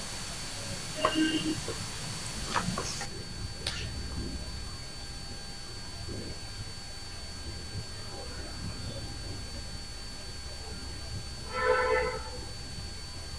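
A young man speaks briefly and quietly, close by.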